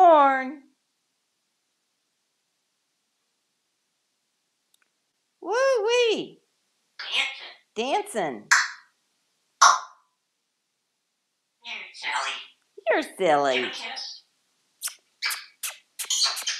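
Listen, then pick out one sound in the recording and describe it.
A parrot whistles, squawks and chatters in bursts in a small echoing room.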